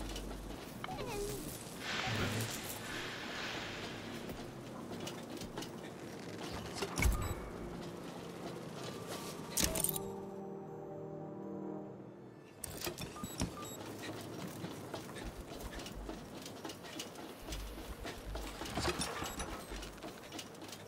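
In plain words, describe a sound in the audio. Footsteps clank on metal walkways.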